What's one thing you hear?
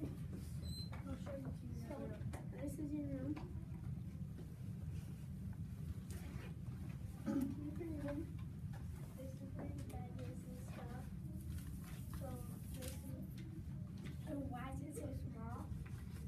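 Children talk quietly nearby in a room.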